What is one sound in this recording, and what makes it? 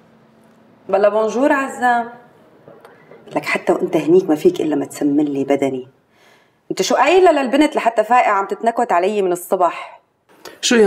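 A woman talks on a phone, close by and calmly.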